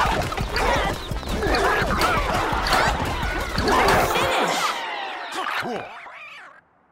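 Squeaky toy hammers bonk again and again.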